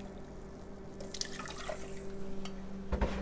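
Milk pours into a pot.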